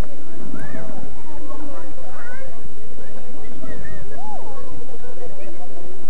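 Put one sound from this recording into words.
Several adults talk and call out close by in the open air.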